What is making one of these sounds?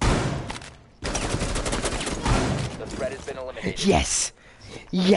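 Rapid gunfire rattles loudly at close range.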